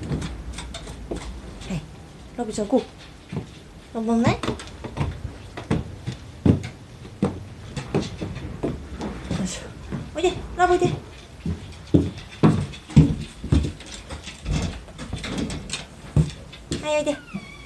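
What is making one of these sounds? Footsteps thump down wooden stairs and along a floor.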